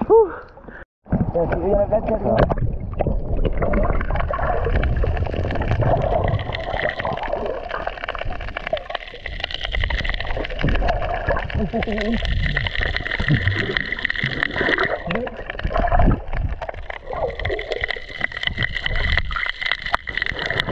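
Air bubbles gurgle and rumble underwater.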